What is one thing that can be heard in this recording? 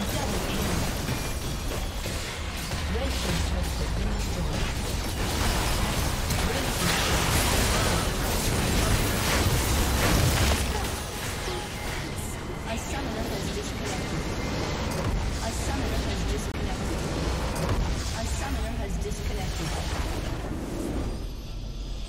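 Game spell effects crackle, whoosh and boom in a fast battle.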